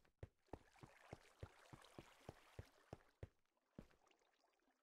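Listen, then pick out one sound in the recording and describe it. Footsteps tap lightly on stone at an even pace.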